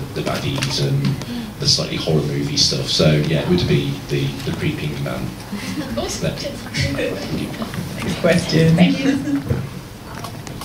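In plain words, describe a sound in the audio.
A young man talks calmly into a microphone, heard through loudspeakers in a large room.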